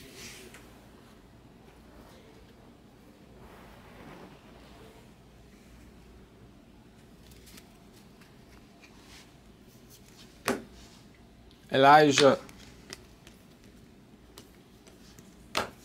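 Cards riffle and slide against each other as they are shuffled by hand.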